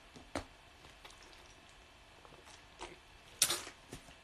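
A woman gulps liquid from a plastic bottle.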